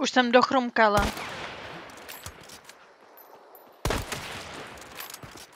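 A rifle fires with a loud crack and echoes away.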